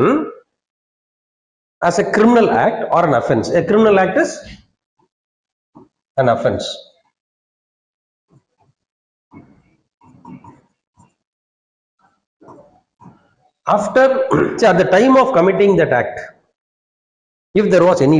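A middle-aged man lectures through a clip-on microphone, speaking calmly in bursts.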